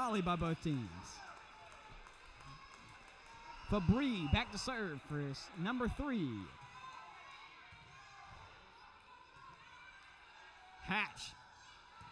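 A volleyball is struck with a sharp slap in an echoing gym.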